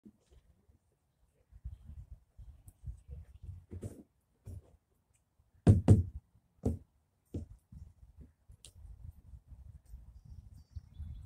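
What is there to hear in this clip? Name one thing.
A horse's hooves shift and stamp on hard ground.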